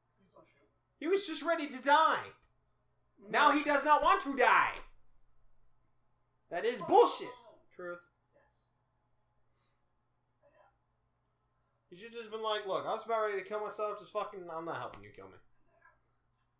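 A young man speaks close to a microphone in short bursts with pauses.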